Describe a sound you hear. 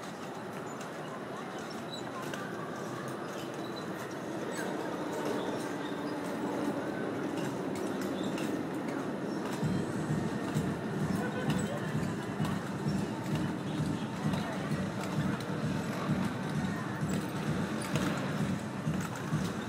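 Mechanical toy ponies clatter and thump as children ride across a hard floor.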